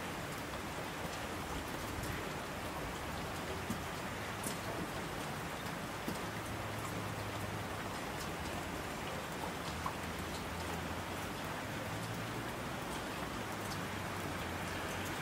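Mountain streams rush and splash.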